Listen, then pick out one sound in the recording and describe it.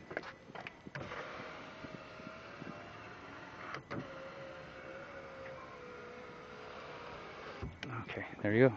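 A power window motor whirs steadily as the glass slides up.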